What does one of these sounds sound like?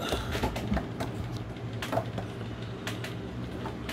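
A plastic toy's feet tap on a table.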